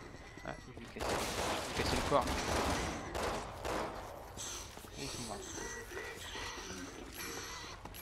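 Guns fire in short bursts.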